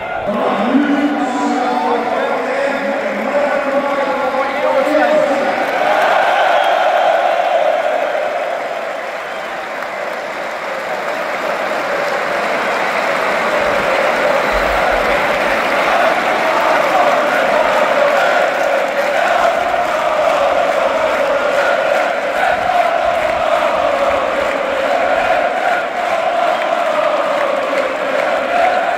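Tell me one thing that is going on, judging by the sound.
A large stadium crowd chants and sings.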